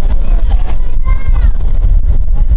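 Metal wheels squeal briefly on the rails.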